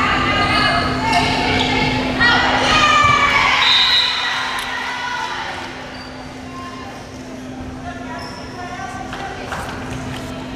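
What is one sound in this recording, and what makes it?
A volleyball is struck with a smack.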